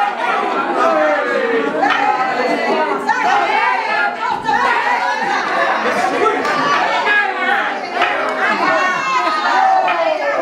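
A group of men and women sing and shout together loudly, close by.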